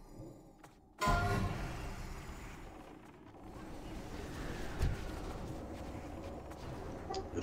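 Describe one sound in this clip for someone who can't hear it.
Spell effects crackle and whoosh during a game battle.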